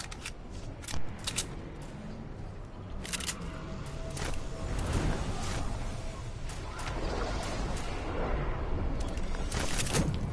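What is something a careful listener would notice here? Wind rushes steadily past a gliding game character.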